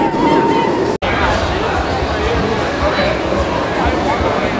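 A roller coaster train roars past on its track overhead.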